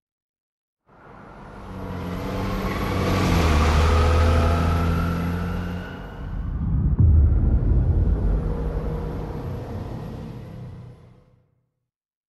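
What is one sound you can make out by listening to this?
A heavy truck engine rumbles as the truck drives along and moves away.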